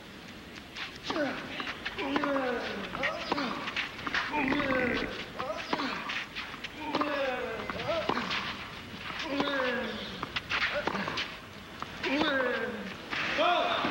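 A tennis ball is struck hard with a racket, back and forth in a rally.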